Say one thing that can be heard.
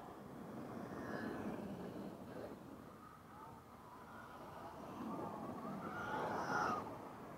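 Electric motors of remote-control cars whine as the cars race past.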